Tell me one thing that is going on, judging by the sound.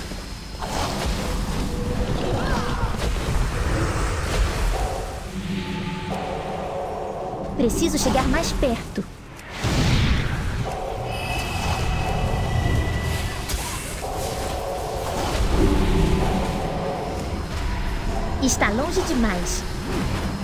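Spell effects whoosh and crackle in a game battle.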